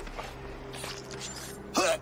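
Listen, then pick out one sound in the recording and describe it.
Men scuffle and strike each other with dull thuds.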